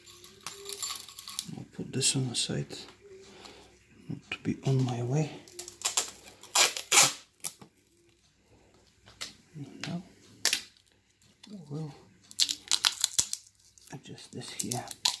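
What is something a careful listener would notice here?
Plastic parts click and snap as hands fit them together.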